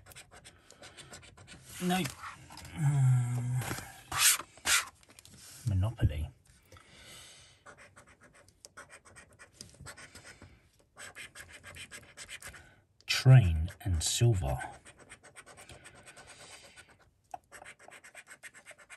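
A coin scratches across a scratch card.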